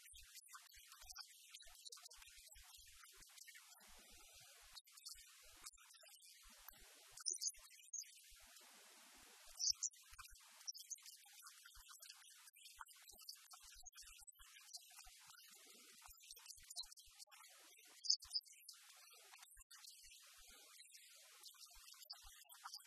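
An elderly woman speaks calmly through a clip-on microphone.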